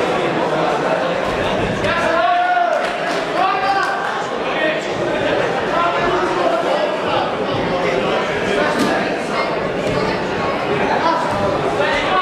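Boxing gloves thud against bodies.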